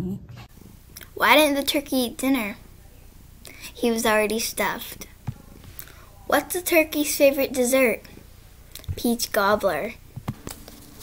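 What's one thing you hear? A young girl speaks with animation close to a microphone.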